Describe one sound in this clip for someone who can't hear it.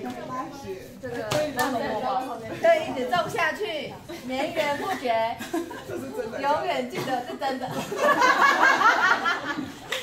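A woman talks and laughs cheerfully nearby.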